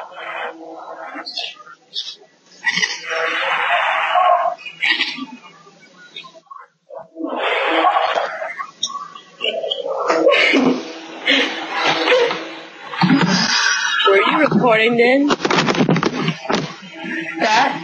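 Young women talk and laugh over an online call.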